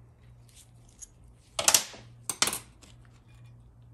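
Small metal parts clink as they are set down.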